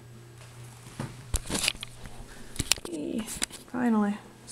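Hands rub and knock against the microphone.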